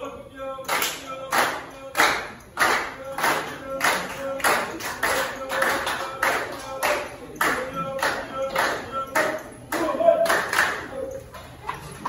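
A group of people claps in a fast, steady rhythm in an echoing hall.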